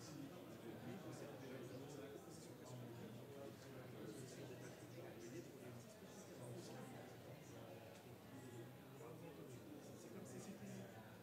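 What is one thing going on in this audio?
A crowd of men and women chat at a distance in a steady murmur.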